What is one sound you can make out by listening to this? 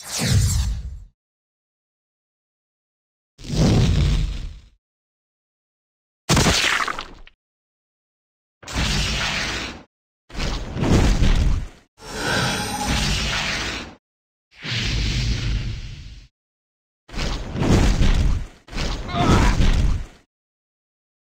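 Magic spells burst with loud whooshing blasts, again and again.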